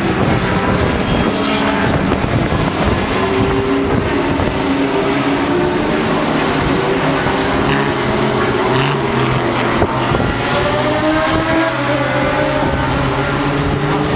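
Several racing car engines roar loudly as the cars speed past, changing pitch through the gears.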